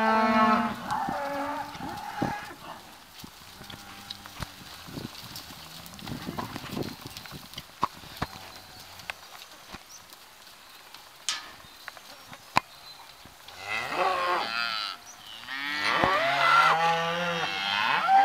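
Hooves thud softly on dirt as cattle walk.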